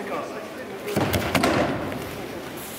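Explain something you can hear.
A body thuds onto a padded mat.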